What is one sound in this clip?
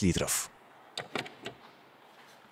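A small car fuel flap clicks shut.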